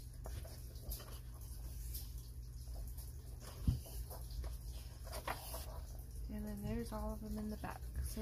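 Paper pages rustle and flap as they are turned by hand.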